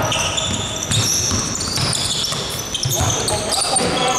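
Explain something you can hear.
A basketball bounces with dull thuds on the court.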